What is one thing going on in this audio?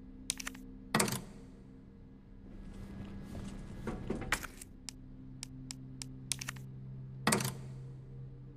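A metal part clicks firmly into a socket.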